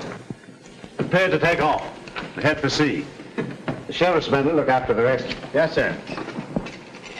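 An elderly man speaks in a low, serious voice.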